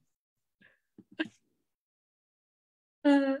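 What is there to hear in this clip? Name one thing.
A second woman laughs and speaks over an online call.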